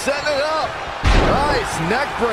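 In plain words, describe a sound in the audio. A body slams hard onto a wrestling mat with a heavy thud.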